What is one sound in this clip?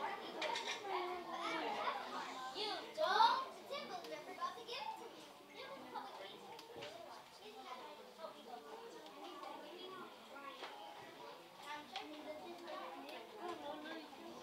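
Children speak lines on a stage, heard from the audience in an echoing hall.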